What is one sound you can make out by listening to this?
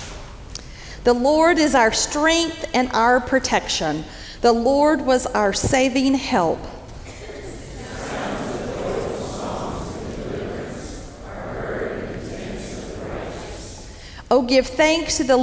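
A man speaks slowly through a microphone in a large echoing hall.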